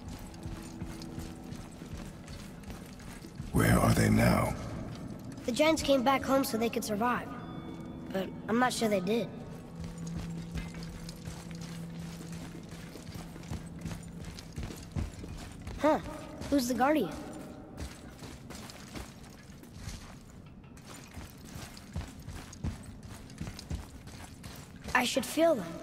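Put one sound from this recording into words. Heavy footsteps thud slowly on stone.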